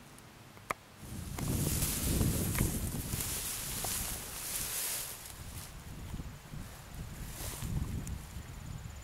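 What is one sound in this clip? Wind gusts loudly outdoors.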